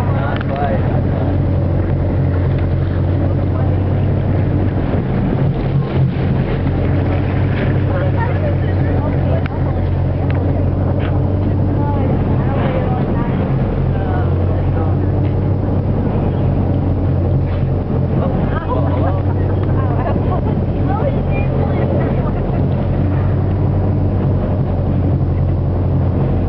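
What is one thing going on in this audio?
Choppy waves splash and lap.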